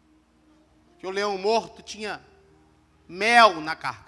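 A man preaches with animation into a microphone over loudspeakers.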